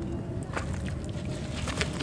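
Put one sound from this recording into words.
Chunks of dry clay crumble and crack.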